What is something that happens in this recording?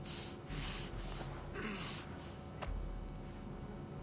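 A man's body thuds onto the floor.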